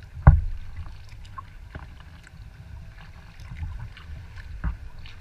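Water laps and splashes against the hull of a kayak.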